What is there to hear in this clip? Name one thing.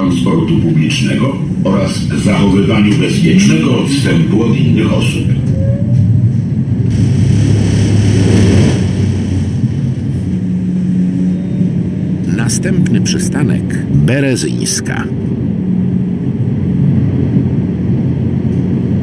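A tram motor hums steadily as the tram speeds up.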